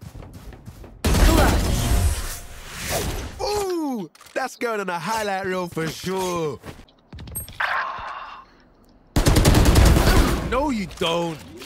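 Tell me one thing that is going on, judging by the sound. Rifle shots fire in rapid, loud bursts.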